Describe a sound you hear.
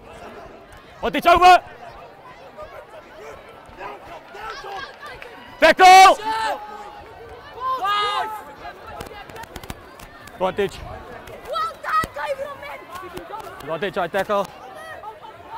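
Spectators shout and cheer loudly outdoors.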